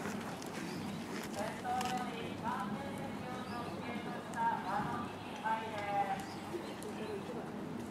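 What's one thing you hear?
Horse hooves thud softly on sand.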